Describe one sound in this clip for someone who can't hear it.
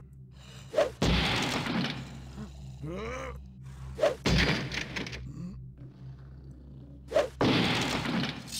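A blade strikes wood with a heavy thud.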